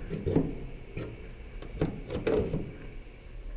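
A car bonnet clunks and rattles as it is lifted open.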